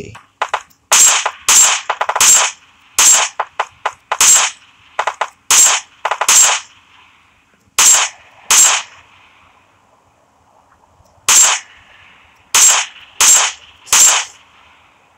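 A rifle fires single loud shots, one after another.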